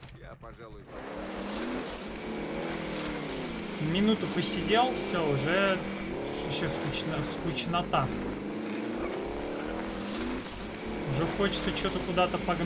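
A vehicle engine roars and revs up and down while driving.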